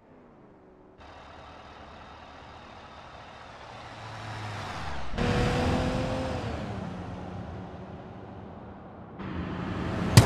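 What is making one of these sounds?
A car engine hums steadily as it drives.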